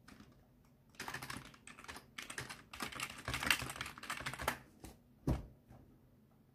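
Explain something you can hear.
Keys clatter on a computer keyboard in quick bursts.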